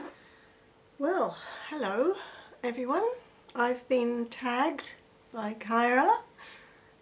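A middle-aged woman speaks calmly, close to the microphone.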